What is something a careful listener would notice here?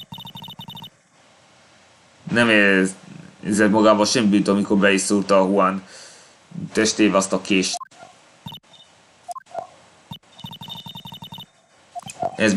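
Short electronic blips chirp in quick bursts.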